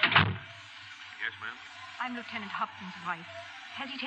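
A man speaks into a microphone, heard through an old, hissy radio recording.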